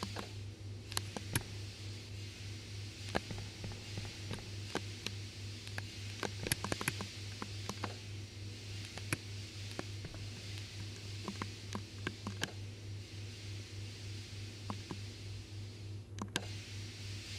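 Steam hisses steadily from a pipe.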